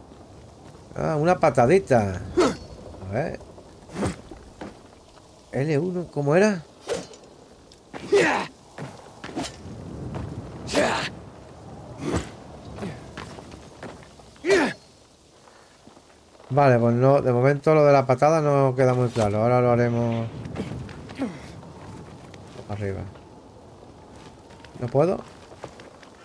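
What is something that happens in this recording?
A middle-aged man talks and laughs with animation into a close microphone.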